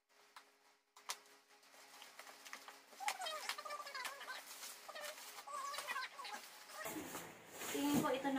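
Plastic wrapping crinkles and rustles under a woman's hands.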